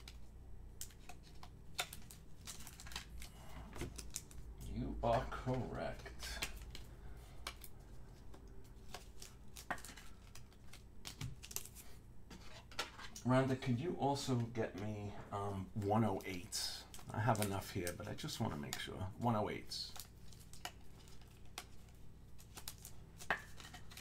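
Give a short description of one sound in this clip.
Plastic card wrappers crinkle and rustle in hands.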